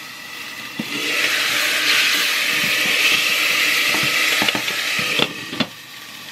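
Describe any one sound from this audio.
Food sizzles and hisses loudly in a hot pan.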